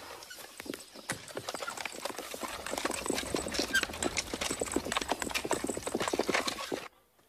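Horse hooves clop on the ground.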